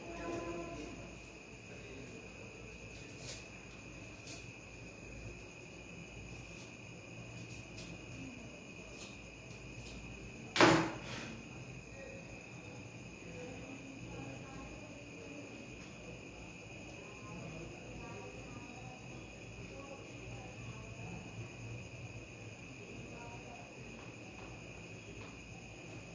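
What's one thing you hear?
A man handles small objects with soft clicks and taps on a table.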